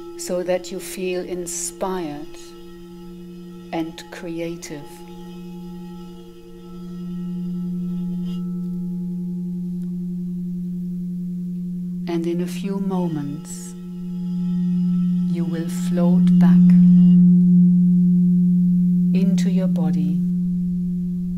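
A woman sings softly into a microphone, in short phrases.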